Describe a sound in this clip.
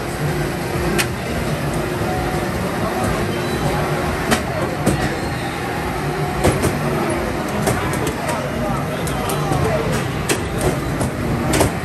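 Clicks and crashes from the racing games ring out now and then.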